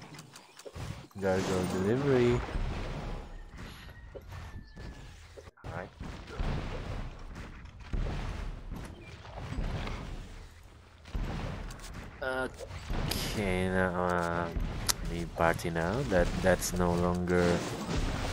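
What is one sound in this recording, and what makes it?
A creature's attack lands with magical bursts and thuds.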